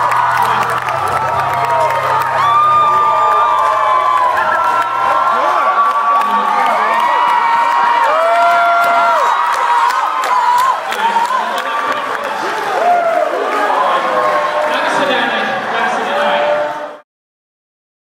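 A crowd cheers and shouts along.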